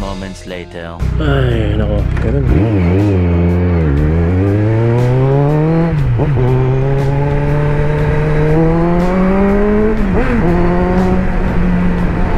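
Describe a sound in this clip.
A motorcycle engine revs and roars, rising and falling in pitch as it shifts gears.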